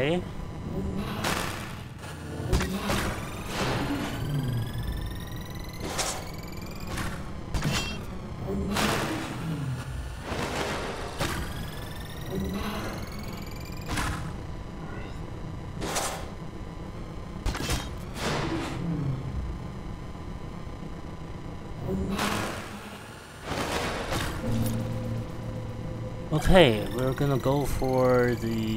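A laser turret fires sharp zapping shots again and again.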